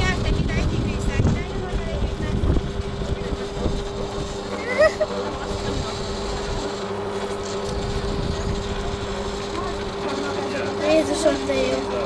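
A potter's wheel motor hums steadily.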